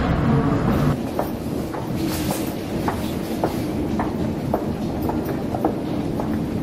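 Passengers' footsteps tap along a corridor.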